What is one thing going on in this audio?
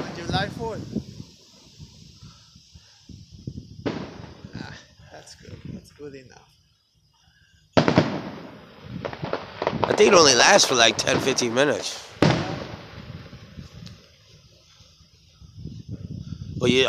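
Fireworks bang and crackle in the night sky.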